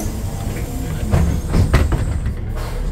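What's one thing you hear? A bus rattles and knocks over bumps in the road.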